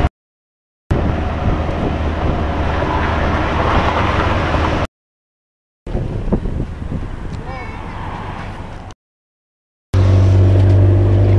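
Wind rushes past open windows of a moving vehicle.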